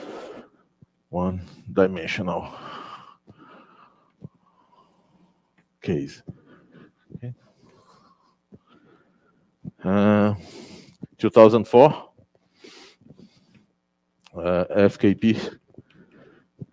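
An elderly man lectures calmly through a microphone.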